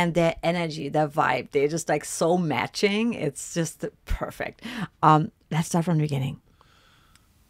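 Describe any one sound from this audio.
A woman talks with animation close to a microphone.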